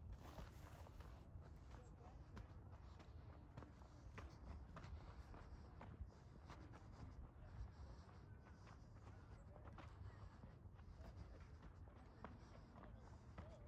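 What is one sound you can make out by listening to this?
Footsteps crunch on gritty sand at a steady walking pace.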